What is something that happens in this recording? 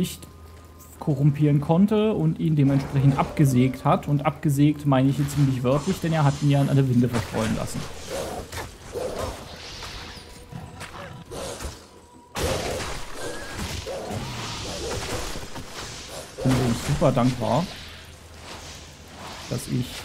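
Game combat sounds of spells and blows crackle and whoosh.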